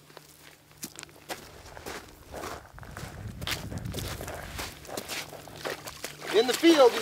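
Boots crunch on gravel.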